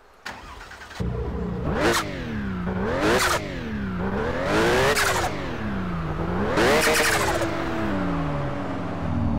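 A car engine revs hard, again and again.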